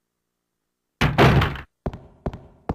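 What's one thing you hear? A heavy door creaks open and shuts.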